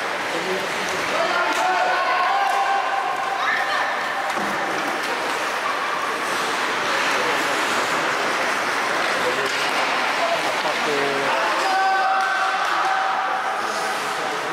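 A crowd shouts and cheers in a large echoing arena.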